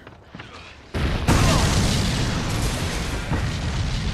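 A loud explosion roars and rumbles.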